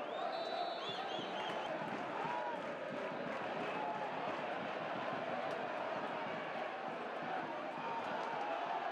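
A large stadium crowd roars and chants steadily outdoors.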